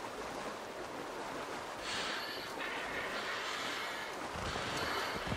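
Water splashes as a horse swims.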